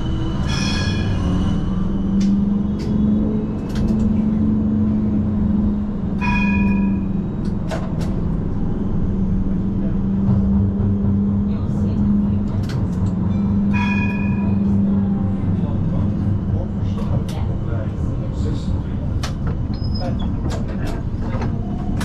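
Tram wheels click and clack over the rails.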